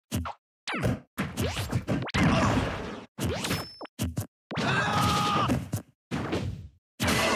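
Sword slashes land with sharp whooshes and thuds.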